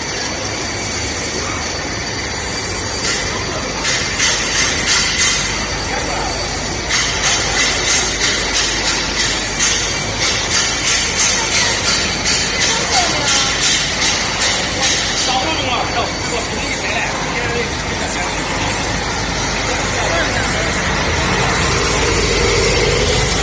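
Industrial machinery hums and roars steadily in a large echoing hall.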